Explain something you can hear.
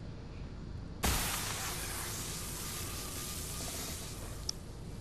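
A magical burst hisses and shimmers.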